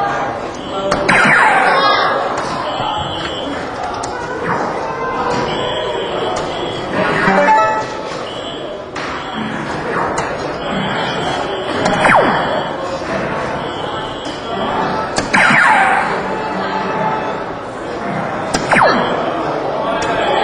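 An electronic dartboard plays short falling tones.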